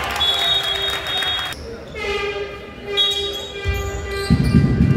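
A referee's whistle blows sharply in an echoing hall.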